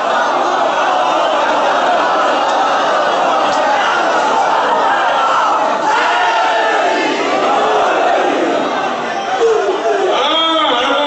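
A man speaks forcefully into a microphone, heard through loudspeakers in an echoing hall.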